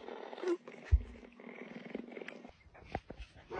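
A cougar chirps softly close by.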